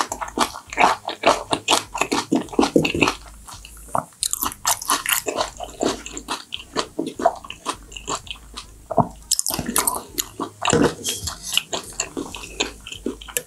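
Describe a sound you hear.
Chopsticks click against dishes.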